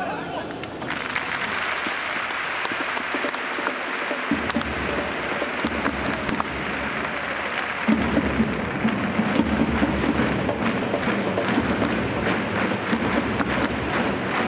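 A large stadium crowd cheers and chants steadily in a wide open space.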